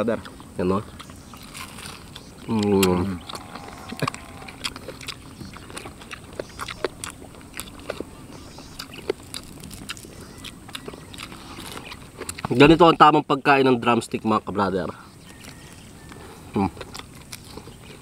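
Crispy food crunches and smacks as it is chewed up close.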